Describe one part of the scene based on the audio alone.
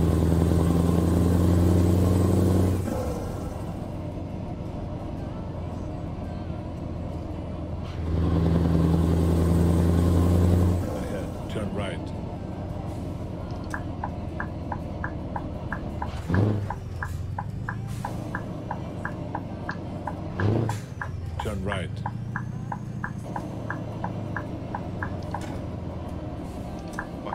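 A truck engine rumbles steadily, growing louder as it accelerates.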